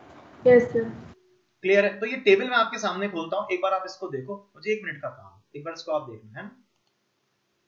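A young man speaks calmly and close to a microphone.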